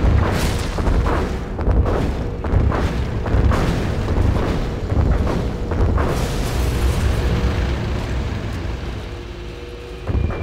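Laser weapons fire in a strategy game.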